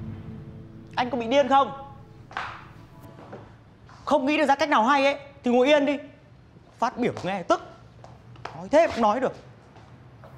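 A young woman speaks sharply and with agitation nearby.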